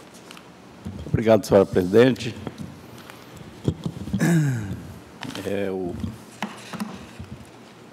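A man speaks briefly through a microphone.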